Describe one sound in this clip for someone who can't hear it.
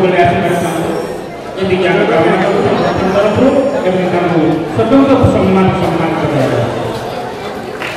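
A man speaks steadily through a microphone and loudspeaker.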